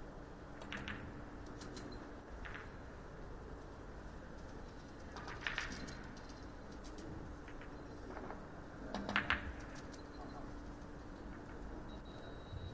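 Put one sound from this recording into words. Billiard balls knock together.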